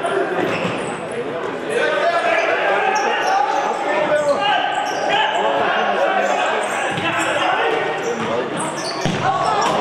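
Men shout to one another across a large echoing hall.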